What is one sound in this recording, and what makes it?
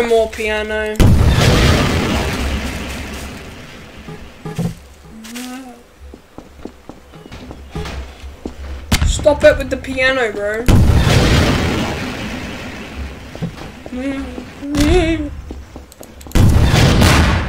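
A rocket launches with a loud whoosh.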